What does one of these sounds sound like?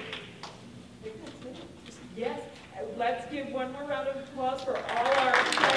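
A middle-aged woman speaks cheerfully.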